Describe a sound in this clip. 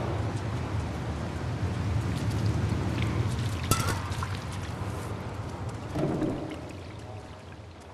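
A cat's paws patter softly on wet pavement.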